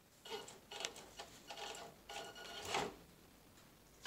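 A small electric motor whirs as a toy car crawls over rocks.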